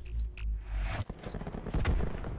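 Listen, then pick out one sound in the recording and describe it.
A rifle fires a single shot.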